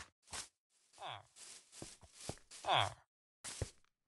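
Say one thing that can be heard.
A villager grunts with a short nasal murmur.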